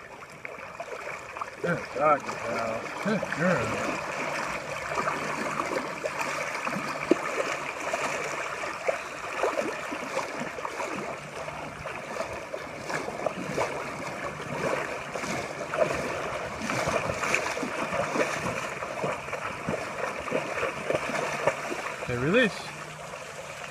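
A large dog splashes as it wades through shallow water.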